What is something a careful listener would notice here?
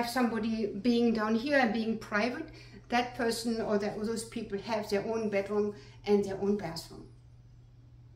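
An older woman speaks calmly and clearly close by.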